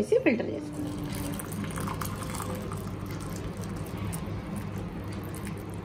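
Liquid pours and trickles through a strainer.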